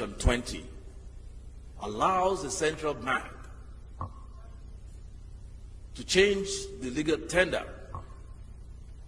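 An elderly man speaks slowly and firmly into a microphone, with pauses.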